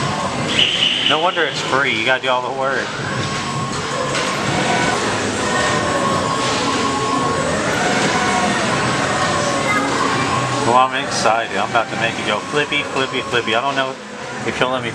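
Riders on a pendulum ride scream.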